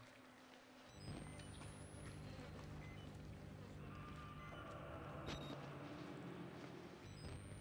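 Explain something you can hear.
A low, eerie hum drones steadily.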